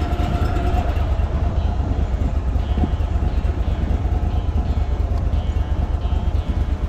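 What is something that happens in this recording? A boat's outboard motor hums steadily.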